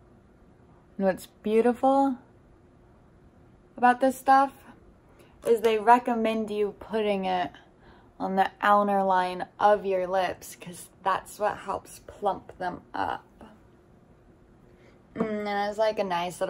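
A young woman speaks close to a microphone, in a soft, lively voice.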